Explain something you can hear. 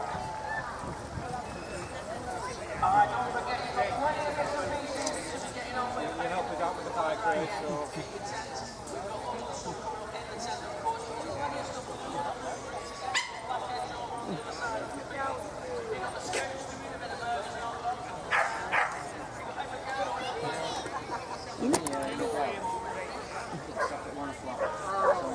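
A crowd of men and women chat outdoors at a distance.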